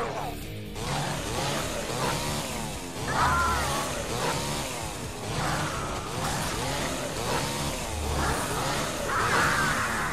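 Blades slash and strike repeatedly in a fast fight.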